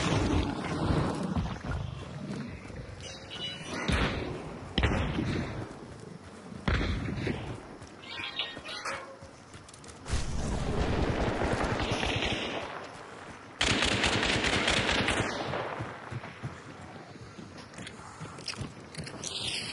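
Footsteps run quickly over ground and wooden boards.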